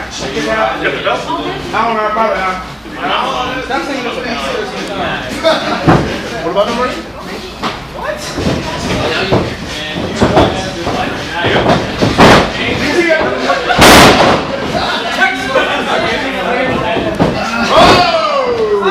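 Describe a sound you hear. Bodies thump and scuffle on a wrestling mat.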